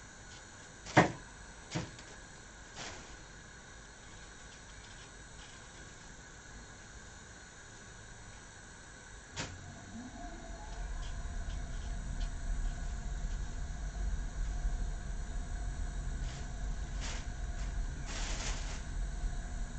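A knife knocks against a plate now and then.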